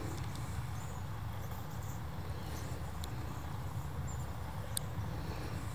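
A small animal rustles through short grass.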